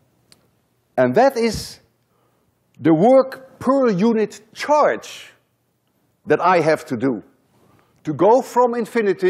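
An elderly man lectures with animation through a microphone.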